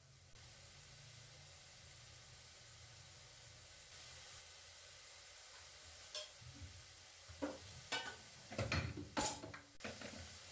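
Vegetables sizzle softly in a hot pan.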